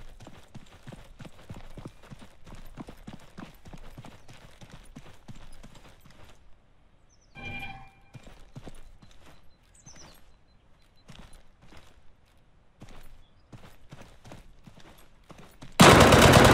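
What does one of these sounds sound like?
Footsteps crunch steadily on gravel and concrete.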